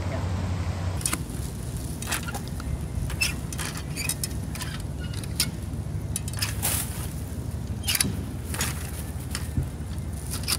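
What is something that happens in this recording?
A litter picker clicks and scrapes as it grabs rubbish.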